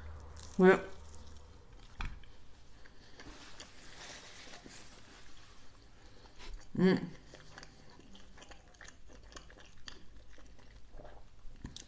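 A woman chews food with soft, wet mouth sounds.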